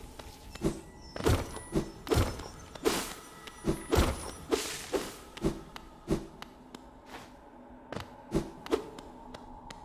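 Sharp video game slashes and hits ring out in quick succession.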